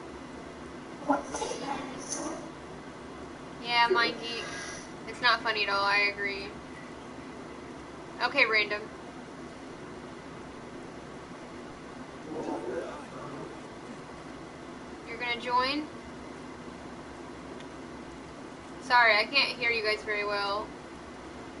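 A young woman talks with animation into a close microphone, in short bursts.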